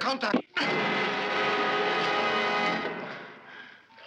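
A man cries out loudly in a long strained yell.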